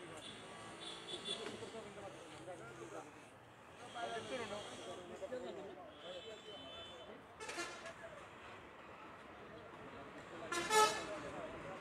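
Several men talk and chatter close by, outdoors.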